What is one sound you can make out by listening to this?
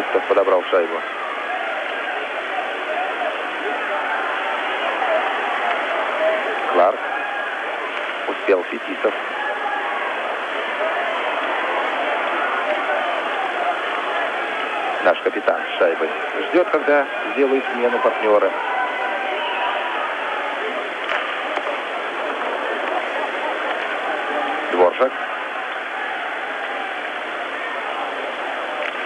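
A large crowd roars steadily in an echoing arena.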